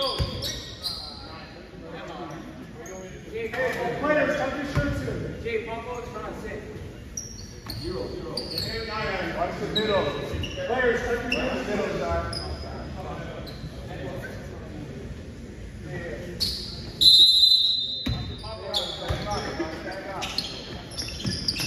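Players and spectators talk and call out in a large echoing gym.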